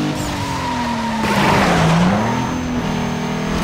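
Tyres hiss and skid over a slippery road.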